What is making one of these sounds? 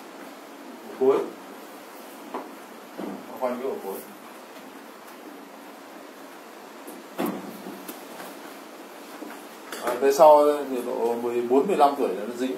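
A man speaks calmly nearby, in short bursts.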